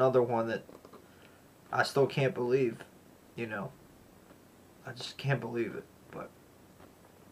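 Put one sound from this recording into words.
A young man talks calmly close to a microphone, in short phrases with pauses.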